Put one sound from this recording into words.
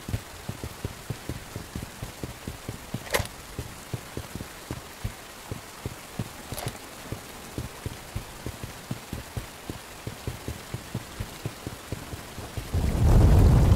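Footsteps walk steadily over hard ground.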